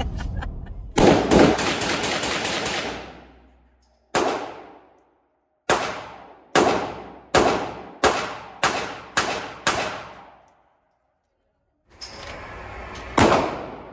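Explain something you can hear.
Gunshots crack one after another, echoing loudly indoors.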